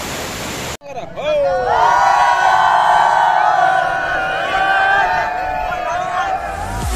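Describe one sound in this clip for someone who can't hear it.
A large crowd of young men and women cheers and shouts loudly outdoors.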